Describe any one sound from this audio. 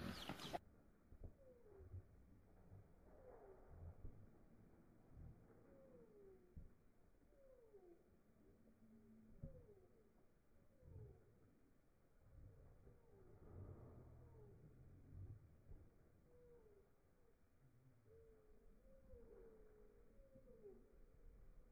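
Chickens cluck nearby.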